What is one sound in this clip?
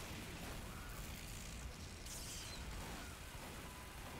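A flamethrower roars in bursts.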